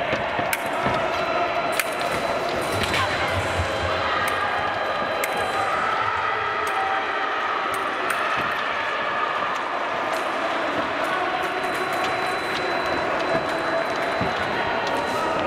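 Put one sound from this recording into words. Fencers' feet stamp and shuffle on a piste in a large echoing hall.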